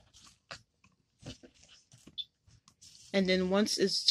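A hard plastic piece rustles and taps against a cardboard box as it is handled.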